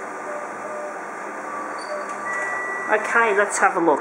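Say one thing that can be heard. A printer feeds out a sheet of paper with quick clicking and whirring.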